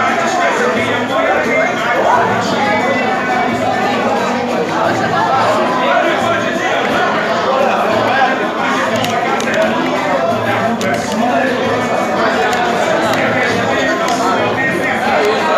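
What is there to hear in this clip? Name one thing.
Pool balls click together as a cue strikes.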